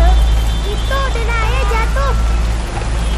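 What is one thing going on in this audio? A woman speaks briefly from inside a car.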